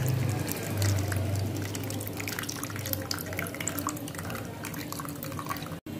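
Liquid drips and trickles into a container.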